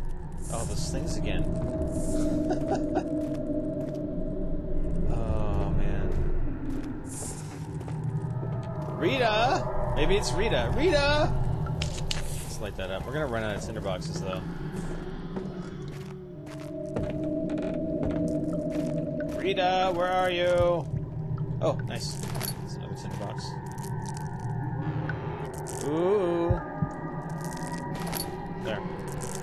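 A young man talks calmly and close into a microphone.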